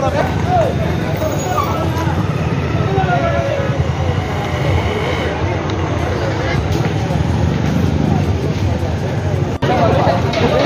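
Several men talk loudly outdoors.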